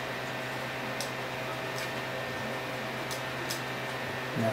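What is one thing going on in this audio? Knobs click softly as they are turned.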